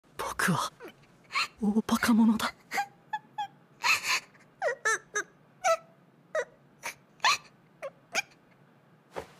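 A young woman sobs and speaks in a broken, tearful voice close by.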